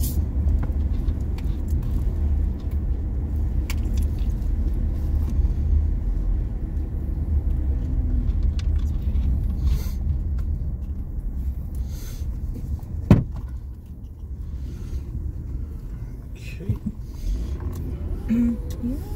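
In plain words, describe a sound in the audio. Tyres rumble on a paved road.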